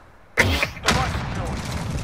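A loud explosion booms nearby.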